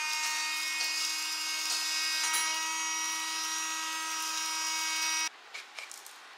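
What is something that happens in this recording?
A small handheld vacuum cleaner whirs with a steady high whine.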